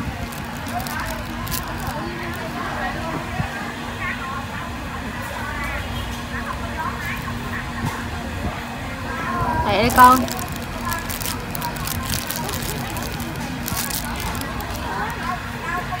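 A cat chews food with soft smacking sounds.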